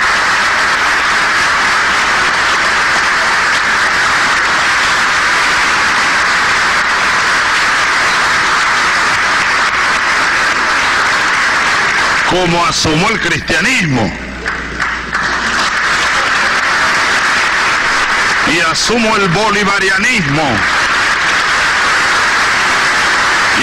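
A large crowd applauds and cheers in a big echoing hall.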